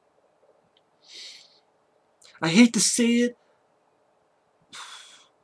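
A man breathes out sharply close to a microphone.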